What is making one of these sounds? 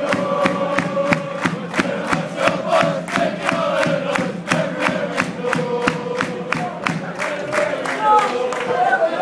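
A football crowd claps in rhythm in an open stadium.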